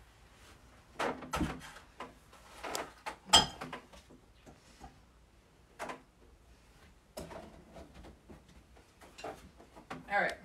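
Metal pots and cups clatter and clank as a young woman sets them down.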